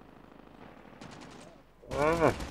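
Rapid gunfire rattles from a game.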